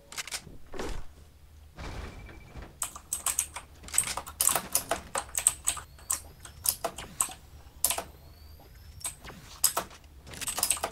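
Footsteps clatter quickly across a hollow wooden floor.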